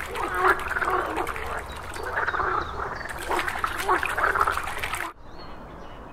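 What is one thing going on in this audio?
A frog croaks loudly in rapid, rattling bursts close by.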